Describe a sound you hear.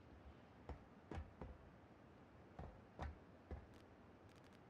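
Heavy footsteps thud on a hard floor.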